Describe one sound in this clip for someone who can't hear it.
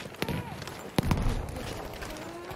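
A heavy explosion booms nearby.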